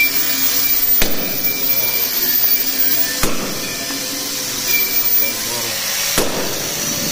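A hammer strikes metal with sharp ringing clangs.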